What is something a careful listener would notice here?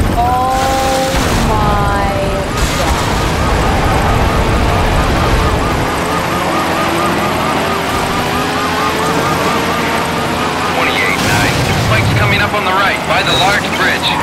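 Tyres skid and scrape on dirt.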